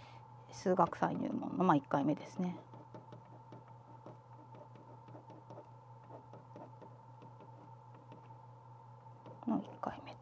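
A pen scratches softly across paper.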